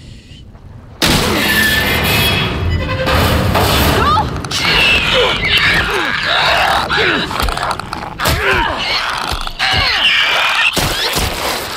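A creature snarls and shrieks close by.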